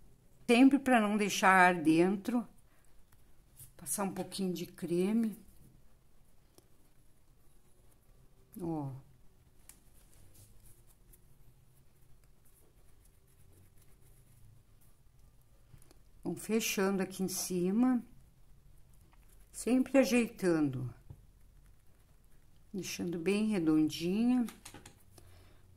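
Fingers softly knead and roll a lump of clay.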